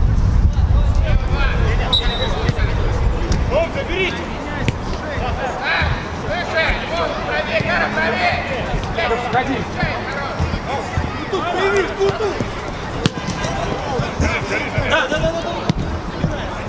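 Men shout to each other across an open pitch.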